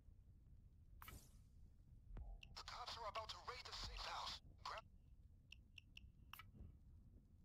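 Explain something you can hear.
Short electronic menu blips and whooshes sound as selections change.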